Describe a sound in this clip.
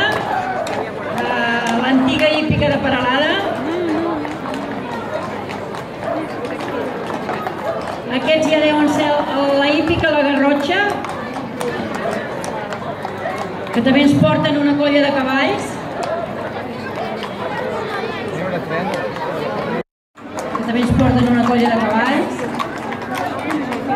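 Horses' hooves clop on a paved street.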